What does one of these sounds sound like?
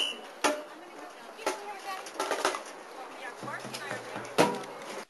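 A crowd of spectators chatters and calls out close by outdoors.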